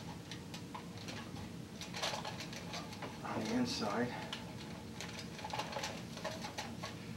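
Tin foil crinkles and rustles under fingers.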